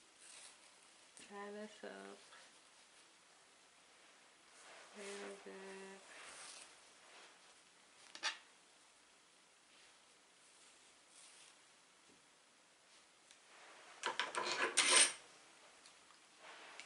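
Yarn rustles softly as hands handle it.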